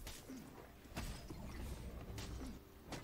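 A magic spell crackles and hums.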